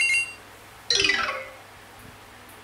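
A mobile game plays a quick falling jingle.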